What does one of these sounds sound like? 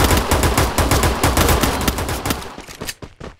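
Gunshots ring out.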